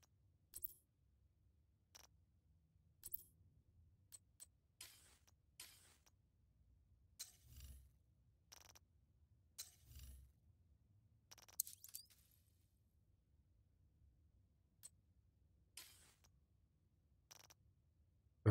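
Short interface clicks and soft whooshes sound as menus change.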